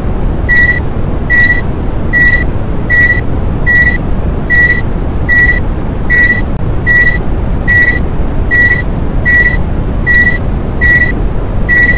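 An elevator chime gives a short, high beep at each floor, repeating evenly and quickly.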